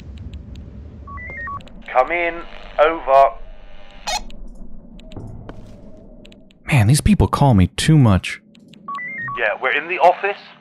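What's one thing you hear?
A walkie-talkie gives short electronic beeps.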